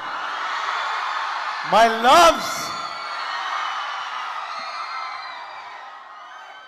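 A large crowd cheers and screams.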